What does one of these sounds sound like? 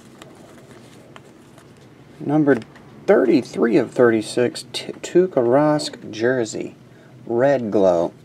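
Trading cards shuffle and slide against each other.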